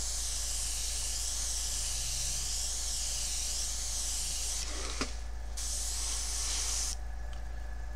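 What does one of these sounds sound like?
An airbrush hisses steadily.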